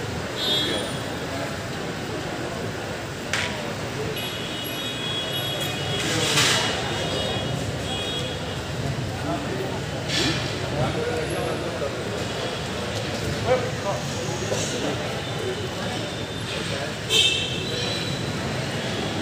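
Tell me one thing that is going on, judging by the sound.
A crowd of men talks and murmurs close by.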